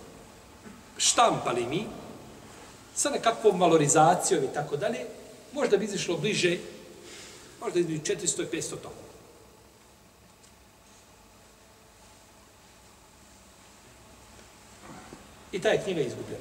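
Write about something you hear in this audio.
A middle-aged man speaks calmly and with animation, in short bursts with pauses.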